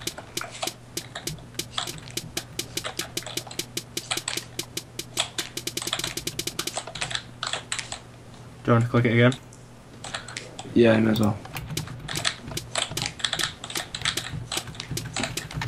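Stone blocks are placed one after another with quick, rapid clicking knocks.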